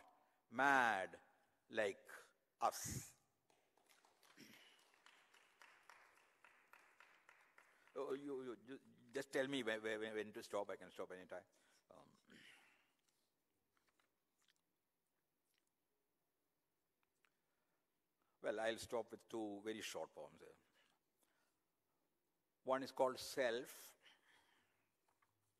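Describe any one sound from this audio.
An elderly man recites expressively into a microphone, with long pauses.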